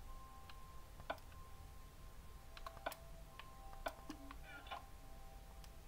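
Short clicks and beeps come from a video game menu.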